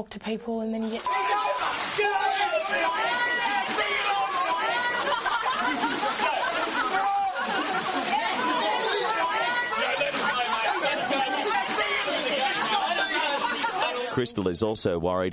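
Water splashes loudly as people wrestle in a pool.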